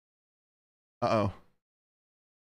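A man exclaims briefly close to a microphone.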